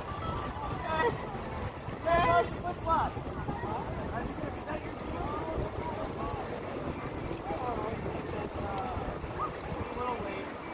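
Several adults talk and call out with animation nearby, outdoors.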